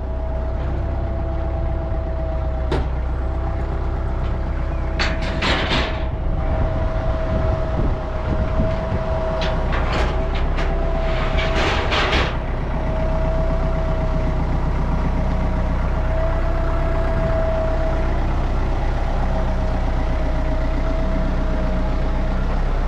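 A tractor's diesel engine rumbles steadily close by.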